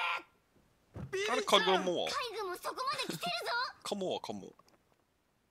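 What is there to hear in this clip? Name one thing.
A young man shouts with animation.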